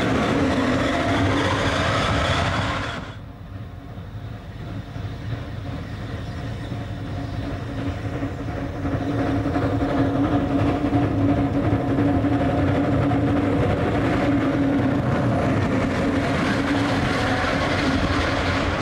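Train carriages rattle past on the rails.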